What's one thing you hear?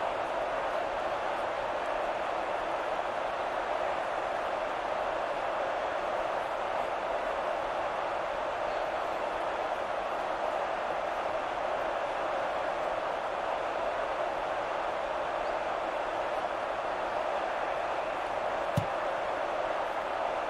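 A stadium crowd murmurs in a steady roar.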